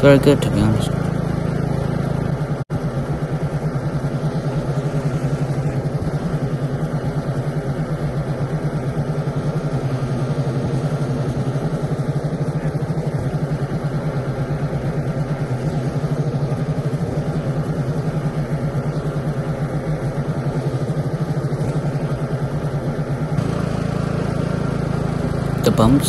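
A ride-on mower engine drones steadily close by.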